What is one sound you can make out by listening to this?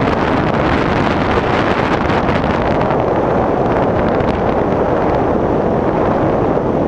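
Wind buffets a microphone during a descent under an open parachute.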